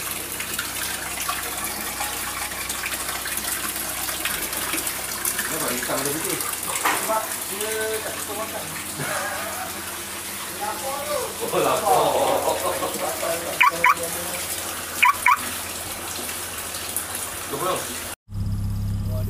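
Water splashes and trickles steadily.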